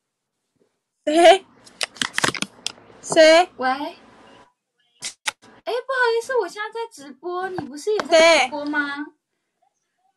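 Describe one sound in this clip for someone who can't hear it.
A young woman talks with animation over a phone.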